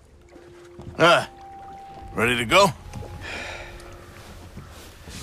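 A man asks a question in a rough, friendly voice.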